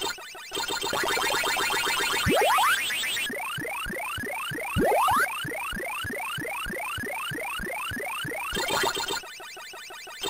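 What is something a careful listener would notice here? Falling electronic tones sweep down quickly, again and again.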